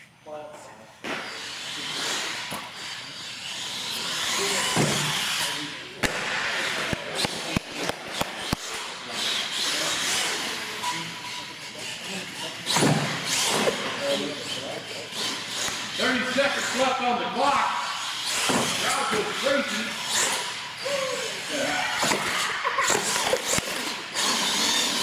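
A toy truck's electric motor whines as the truck speeds over a hard floor.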